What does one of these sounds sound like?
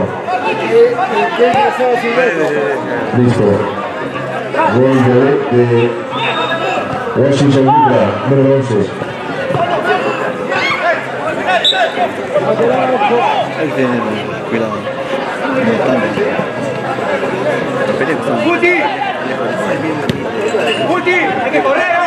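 Men shout and call out across an outdoor field.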